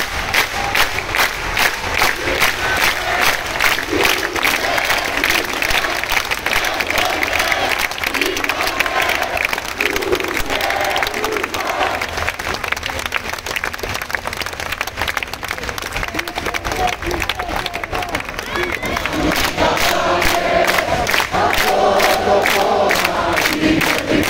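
A large crowd outdoors claps in rhythm.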